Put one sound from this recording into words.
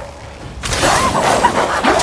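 A heavy blow lands with a swoosh and a thud.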